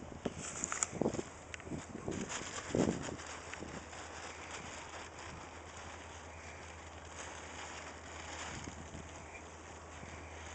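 Horse hooves thud softly on dirt.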